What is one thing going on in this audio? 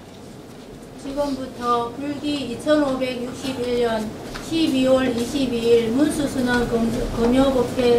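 A group of men and women chant together in unison in an echoing hall.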